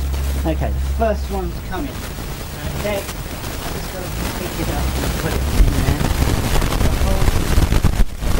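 A young boy talks excitedly nearby.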